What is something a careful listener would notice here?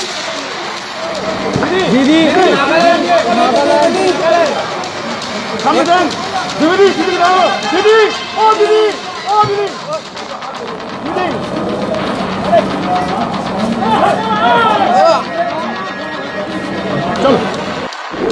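Several men and women talk and call out in a noisy crowd close by.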